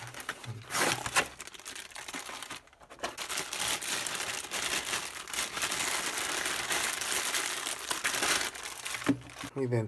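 A plastic bag crinkles loudly as it is handled.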